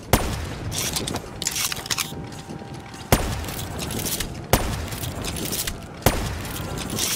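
A heavy gun fires single loud shots, a few seconds apart.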